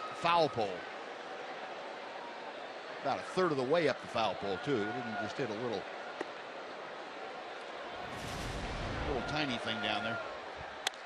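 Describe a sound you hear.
A stadium crowd murmurs in the background.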